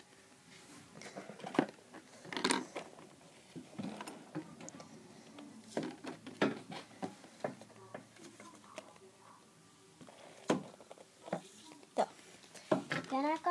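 Plastic objects clatter and tap against a pencil case.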